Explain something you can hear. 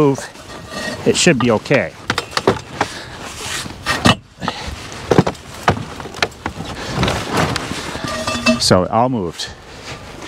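A wooden bar knocks against a wooden sled.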